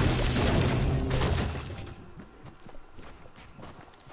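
A pickaxe strikes wood with dull knocks.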